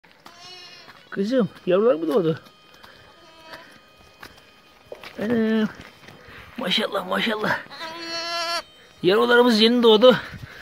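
Sheep and lambs bleat loudly, again and again.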